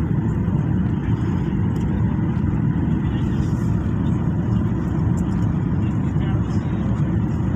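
Jet engines roar steadily inside an airplane cabin.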